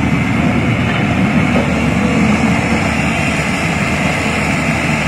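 A diesel excavator engine rumbles steadily nearby.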